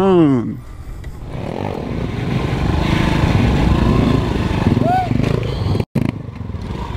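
A motorcycle engine revs loudly close by.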